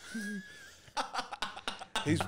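A man laughs loudly close to a microphone.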